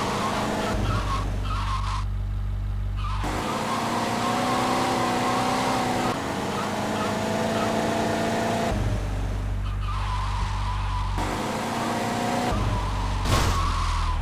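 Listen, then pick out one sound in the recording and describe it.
A car engine hums and revs as the car drives.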